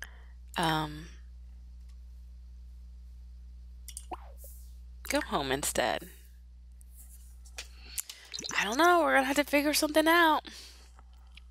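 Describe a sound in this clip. A young woman talks with animation into a microphone, close up.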